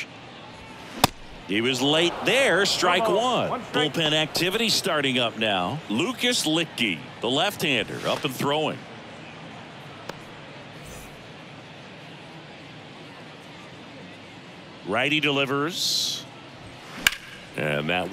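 A pitched baseball smacks sharply into a catcher's mitt.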